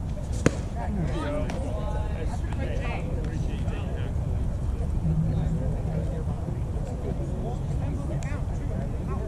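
Men shout and cheer from across an open field.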